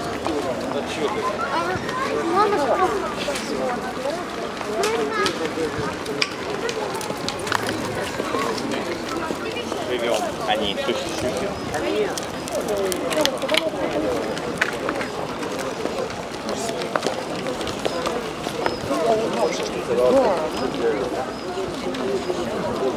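A crowd of people chatters outdoors at a moderate distance.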